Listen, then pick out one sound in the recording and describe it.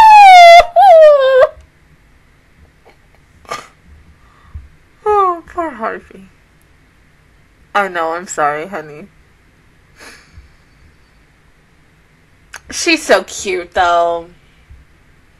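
A young woman squeals and laughs loudly into a close microphone.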